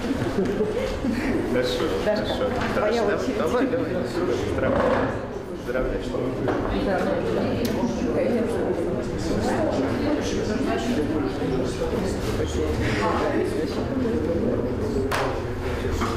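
A young man talks and laughs up close.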